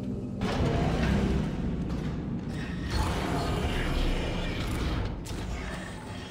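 Heavy metal boots clank on a metal floor.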